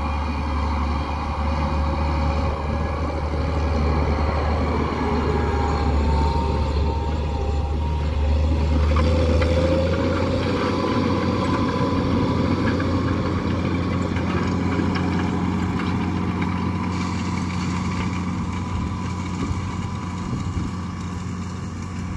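A tractor engine rumbles steadily as it drives across a field.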